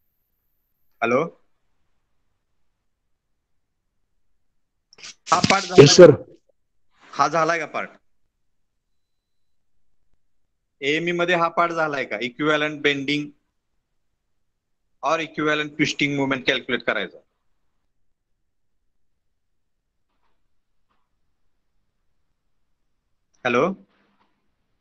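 A man speaks calmly over an online call, in short bursts with long pauses.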